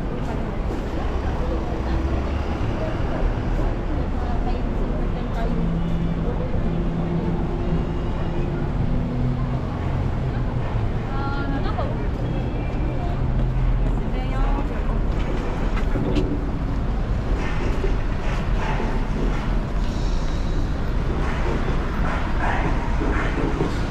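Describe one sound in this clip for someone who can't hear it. Steady city traffic hums and rumbles outdoors.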